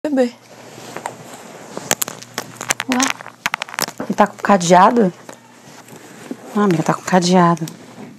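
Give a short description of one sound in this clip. A young woman rustles a fabric bag.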